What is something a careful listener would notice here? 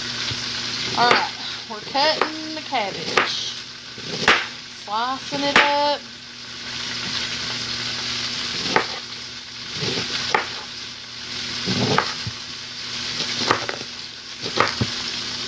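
A knife chops through cabbage on a cutting board.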